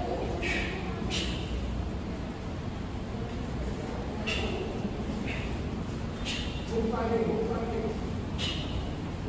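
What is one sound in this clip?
A martial arts uniform snaps sharply with each punch and kick.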